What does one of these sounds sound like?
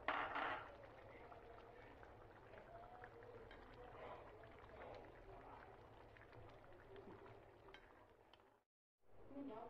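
A thick sauce bubbles gently in a pan.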